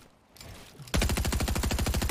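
A gun fires rapidly in a video game.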